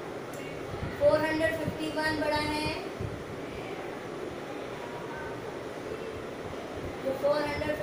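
A woman speaks clearly and calmly, as if teaching, close by.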